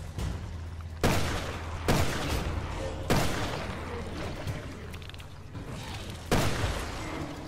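Loud gunshots ring out one at a time with a short echo.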